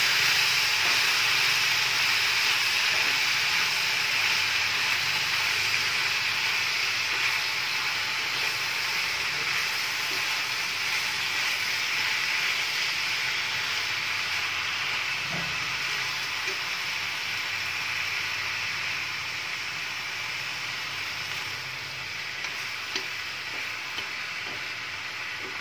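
Chopsticks clatter lightly against a metal pan.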